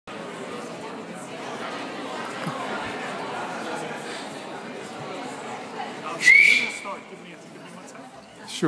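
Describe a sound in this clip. A man speaks steadily through a microphone in a large room.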